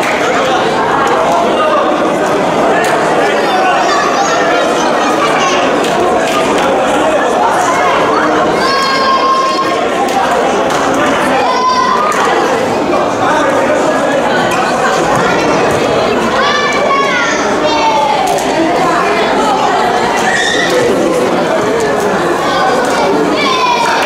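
Young women's high voices shriek and call out excitedly.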